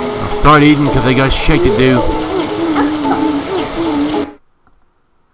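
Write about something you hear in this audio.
Cheerful electronic game music plays with a bouncy melody.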